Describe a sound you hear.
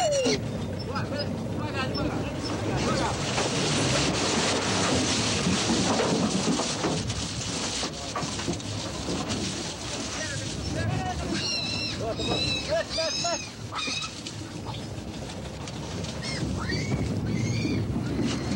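Wind rushes through tree branches outdoors.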